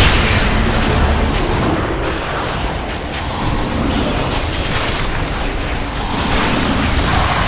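Spell effects and weapon hits crash and whoosh in a busy game battle.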